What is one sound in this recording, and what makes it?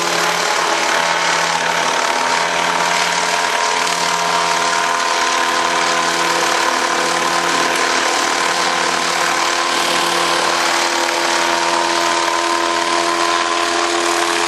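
A model helicopter's engine whines steadily as it hovers close overhead.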